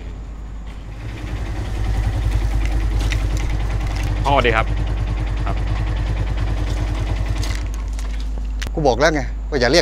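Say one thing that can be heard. A motorcycle engine idles with a steady low chug close by.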